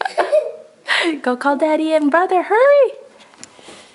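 A young girl sings in a high voice.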